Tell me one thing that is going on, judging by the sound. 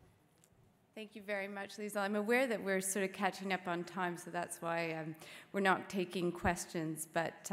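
A young woman speaks with animation into a microphone in a large hall.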